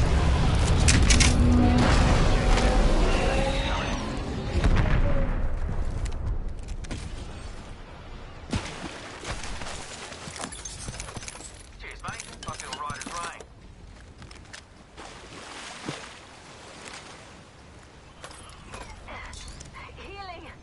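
Game sound effects play, with loud booming at the start that fades.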